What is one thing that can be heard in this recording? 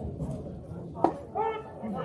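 A baseball pops into a catcher's mitt outdoors.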